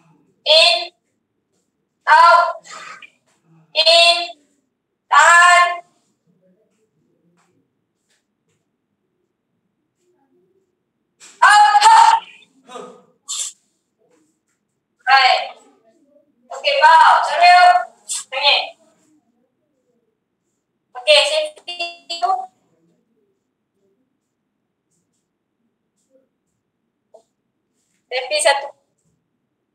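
A woman calls out counts in short, lively bursts over an online call.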